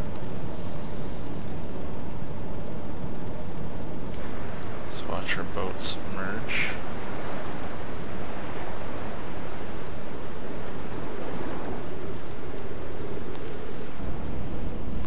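Waves wash and churn steadily around a submarine's hull.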